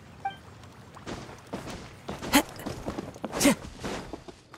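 Footsteps run quickly over ground and wooden boards.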